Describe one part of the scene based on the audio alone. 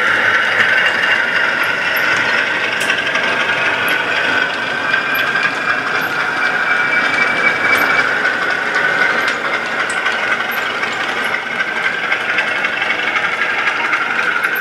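Small wheels click over rail joints.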